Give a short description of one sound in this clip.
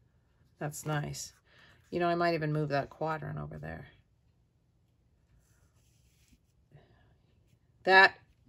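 Paper slides and rustles against paper.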